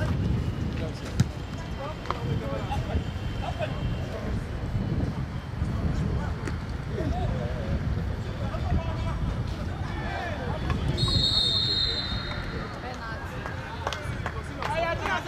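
Young men shout and call out to one another from across the area.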